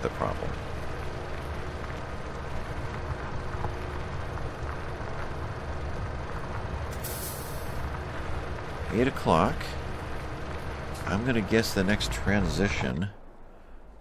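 A tractor engine rumbles steadily.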